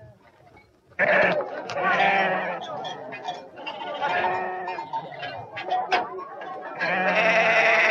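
A flock of sheep bleat loudly, many voices overlapping.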